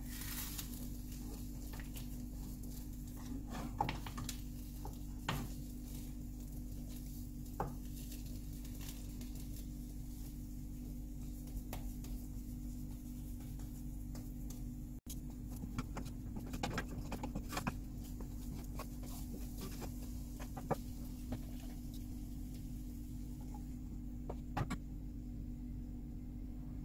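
Eggs sizzle softly in a hot pan.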